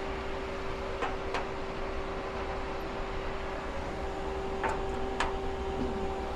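A screwdriver clicks against metal.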